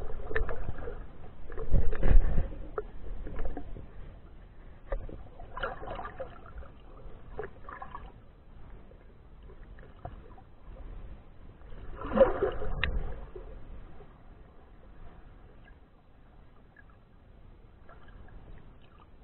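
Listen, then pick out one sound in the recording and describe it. Water bubbles and swirls, muffled underwater.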